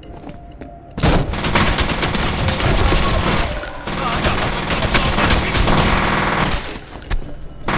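Rapid gunfire bursts echo loudly.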